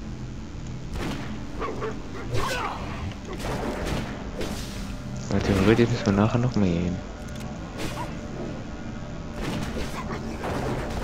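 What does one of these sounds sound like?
Weapons strike and clash in a fight.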